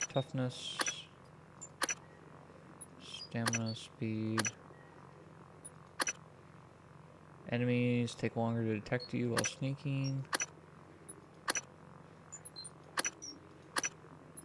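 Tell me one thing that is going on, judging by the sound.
Game menu clicks tick sharply as selections change.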